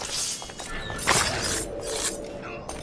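A blade stabs with a sharp, heavy thud.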